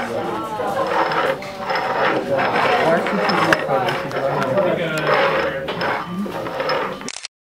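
Cups knock lightly against a tabletop.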